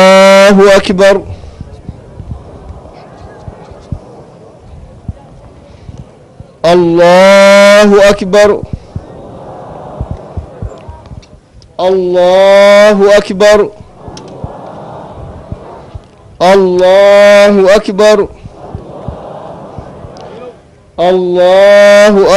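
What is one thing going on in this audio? A man chants loudly through a loudspeaker in long drawn-out phrases.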